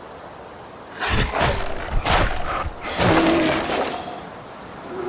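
A weapon swings and strikes with heavy thuds.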